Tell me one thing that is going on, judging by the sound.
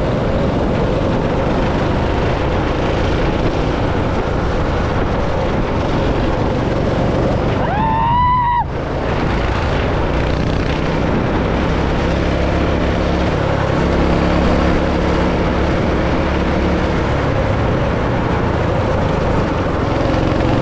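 A go-kart engine drones loudly and steadily close by.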